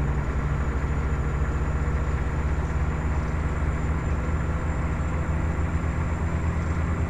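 A truck engine rumbles steadily while driving on a highway.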